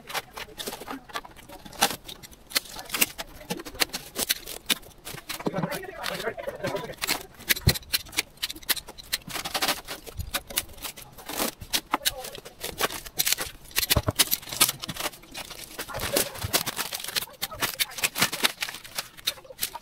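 Grass and weeds rustle and tear as they are pulled up by hand, close by.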